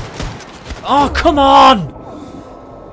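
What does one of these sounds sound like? A man shouts loudly into a close microphone.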